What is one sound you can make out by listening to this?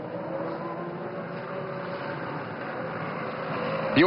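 A racing car engine hums as the car rolls slowly past.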